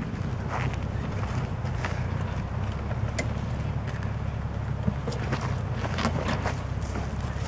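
An engine idles and rumbles low and steady.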